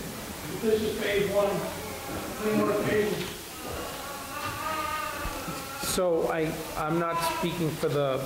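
A middle-aged woman reads out through a microphone in an echoing hall.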